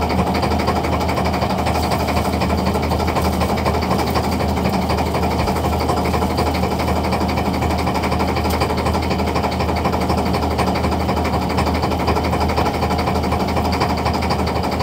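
A boat engine drones loudly and steadily.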